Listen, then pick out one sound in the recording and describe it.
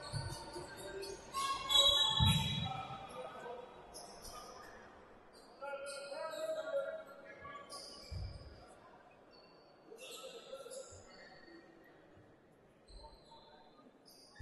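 Players shout on the court in a large echoing hall.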